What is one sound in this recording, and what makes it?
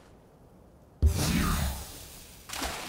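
A heavy thud sounds as something lands hard on stone.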